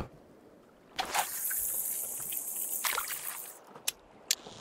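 A fishing line whizzes off a reel during a cast.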